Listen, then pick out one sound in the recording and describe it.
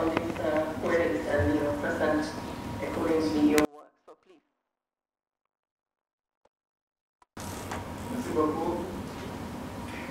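A man speaks steadily through a microphone in a large hall.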